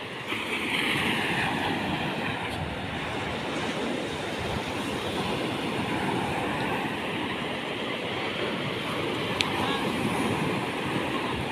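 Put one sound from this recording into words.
Wind blows outdoors.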